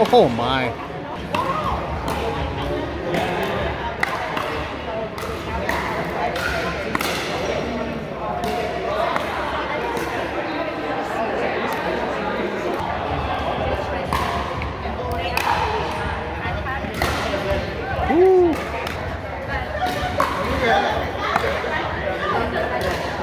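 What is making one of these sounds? Paddles strike a plastic ball with sharp pops, echoing in a large hall.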